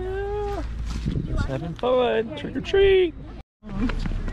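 Young children talk excitedly close by.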